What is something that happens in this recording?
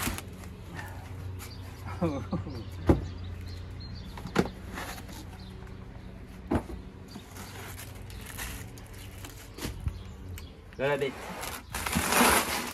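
Hard plastic knocks and thuds against a cardboard box.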